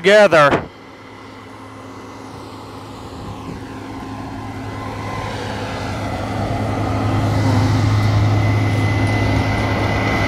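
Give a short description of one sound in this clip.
A tractor pulling a grain cart rumbles past close by.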